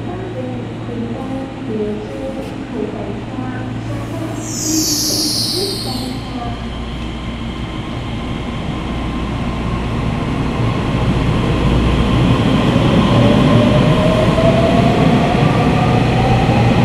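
A train pulls into an underground station and rumbles past, growing louder.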